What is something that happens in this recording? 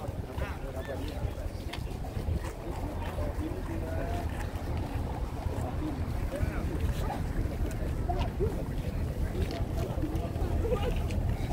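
Footsteps shuffle on pavement as a crowd walks.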